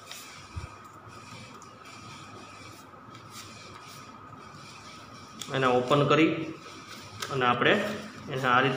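Paper rustles and creases softly as it is folded.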